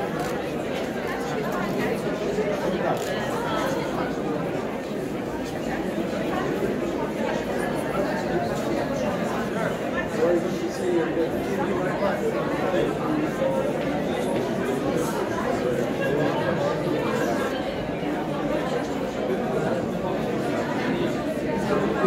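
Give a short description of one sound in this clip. A crowd of men and women chatter all around in an echoing hall.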